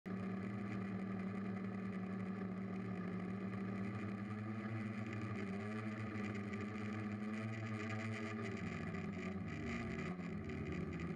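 Small propeller motors whine steadily close by, shifting in pitch now and then.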